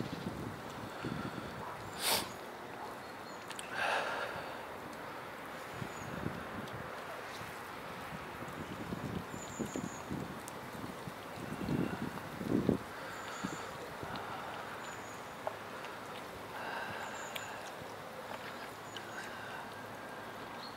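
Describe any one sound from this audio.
Cats chew and lap wet food noisily up close.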